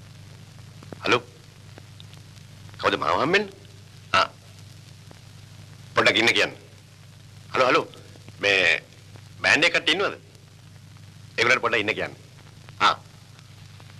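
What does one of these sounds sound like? A man talks into a phone in short bursts.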